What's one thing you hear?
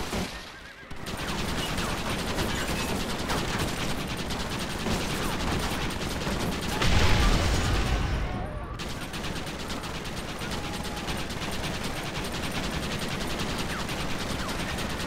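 A Gatling gun fires in rapid, steady bursts.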